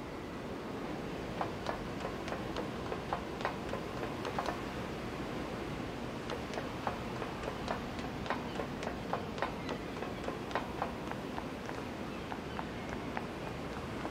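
Light footsteps tap quickly on hard ground.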